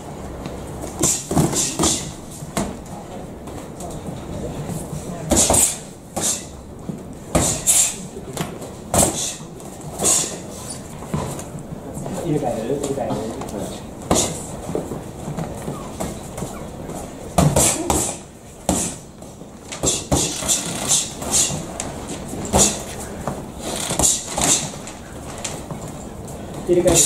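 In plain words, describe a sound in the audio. Boxing gloves thump against each other and against bodies in quick bursts.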